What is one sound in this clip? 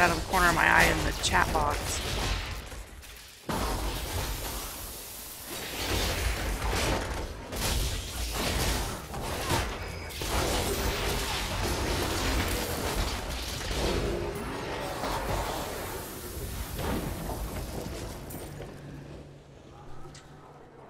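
Magic blasts and crackles in a game battle.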